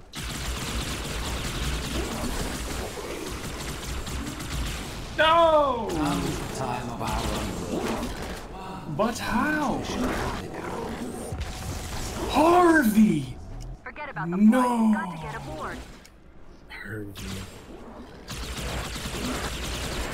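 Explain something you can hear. Energy weapons fire in rapid bursts.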